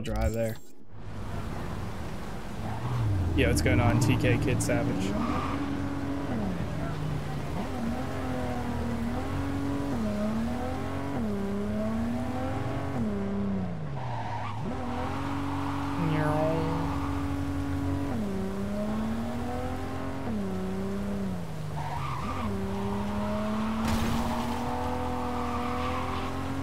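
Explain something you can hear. A car engine revs up and drops in pitch again and again as the car shifts gears.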